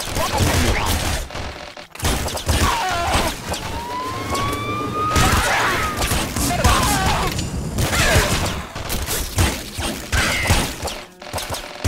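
Retro video game explosions pop and crackle.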